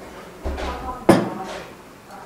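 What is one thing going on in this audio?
A ceramic vase knocks down onto a wooden shelf.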